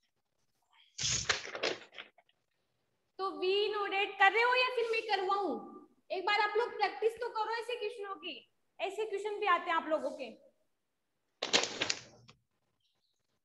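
A young woman speaks calmly and clearly into a clip-on microphone.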